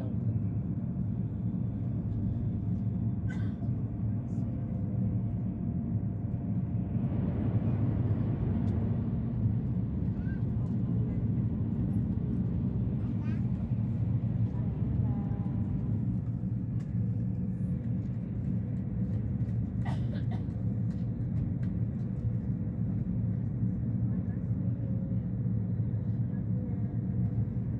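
A train rumbles steadily at speed, heard from inside a carriage.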